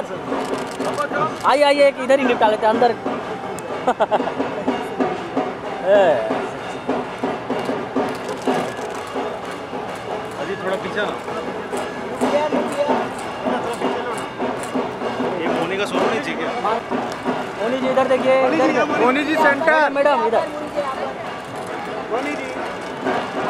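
Several people chatter and call out around the scene.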